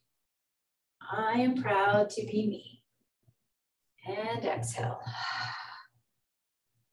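A woman speaks calmly, giving instructions over an online call.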